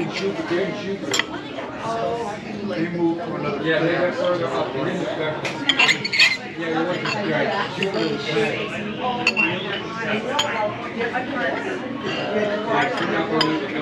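Cutlery clinks and scrapes on a plate.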